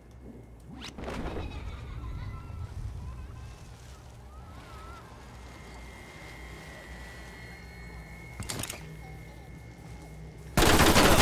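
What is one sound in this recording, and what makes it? Wind rushes steadily past during a fall through the air.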